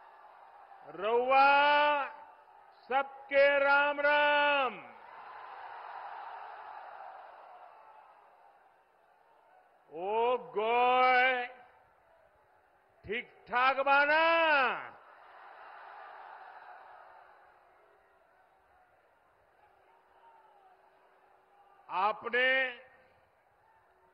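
An elderly man speaks forcefully through a loudspeaker in short, echoing phrases.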